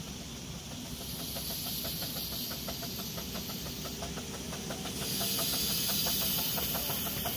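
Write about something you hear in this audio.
A small steam locomotive chuffs rhythmically as it draws closer.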